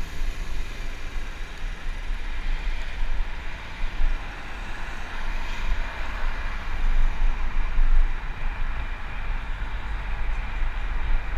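Car tyres roll on the road nearby.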